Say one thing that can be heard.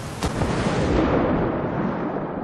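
Bubbles rush and gurgle underwater, muffled.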